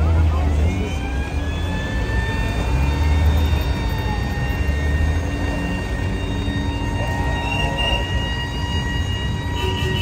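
Car engines idle and rumble nearby.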